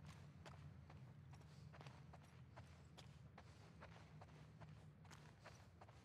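Footsteps thud slowly and steadily on a wooden floor.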